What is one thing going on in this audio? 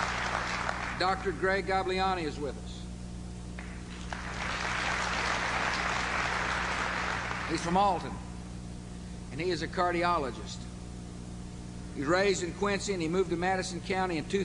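A middle-aged man speaks firmly through a microphone, echoing in a large hall.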